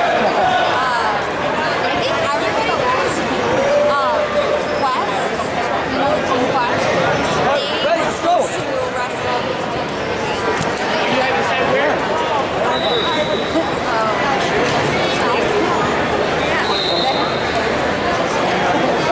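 A crowd of adults and children chatters and shouts in a large echoing hall.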